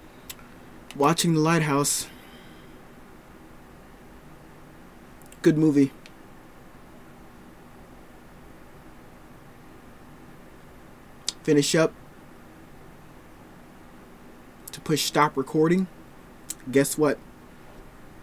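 A man speaks calmly and haltingly into a close microphone, in short bursts with long pauses.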